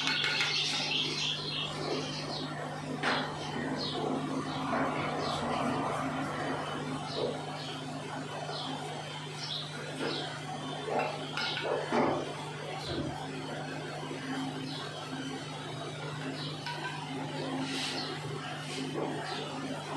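A brush taps against a bowl.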